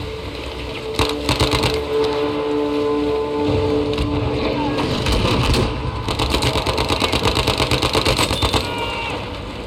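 A rifle fires a rapid string of shots.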